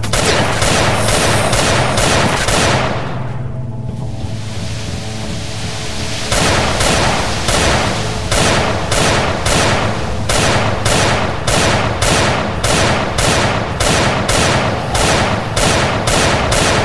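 A weapon strikes again and again in a quick, steady rhythm, with a short pause partway through.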